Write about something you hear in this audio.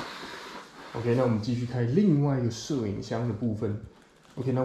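A young man speaks loudly close to a microphone.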